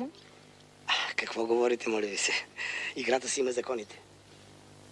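A woman speaks calmly nearby, outdoors.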